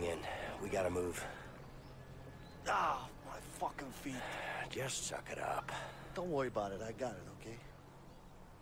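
Another young man answers urgently.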